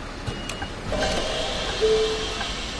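A bus engine grows louder as the bus drives off.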